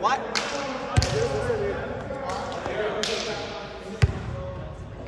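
A volleyball thumps sharply off a player's arms in a large echoing gym.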